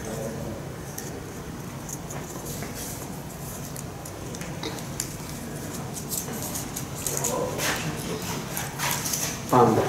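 Paper crinkles as a slip is unfolded.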